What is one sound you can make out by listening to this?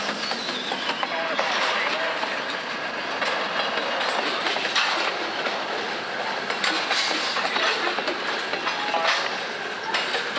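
Tank car wheels clack over rail joints.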